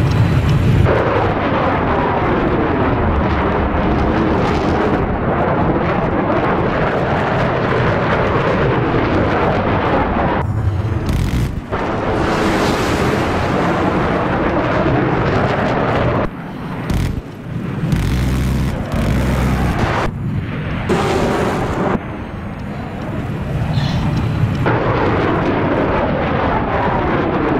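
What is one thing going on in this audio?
A jet engine roars loudly and steadily.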